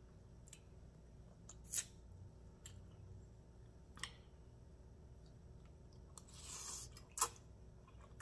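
A fork clinks against a bowl.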